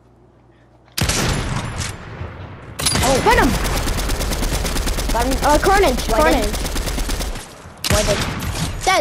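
A sniper rifle fires loud, sharp shots.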